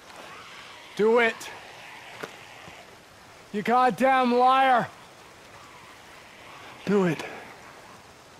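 A man cries out and pleads in a strained voice.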